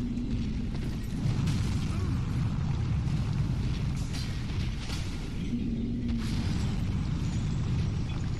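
A huge creature rumbles and growls in a deep voice.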